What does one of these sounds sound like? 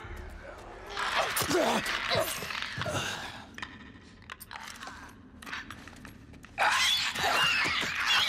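Footsteps run over a hard floor.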